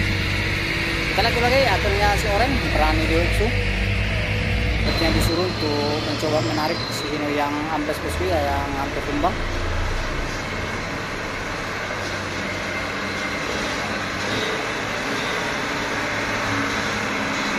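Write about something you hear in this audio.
A truck engine rumbles as the truck slowly drives closer.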